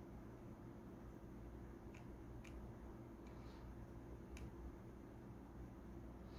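Small buttons click softly under a finger.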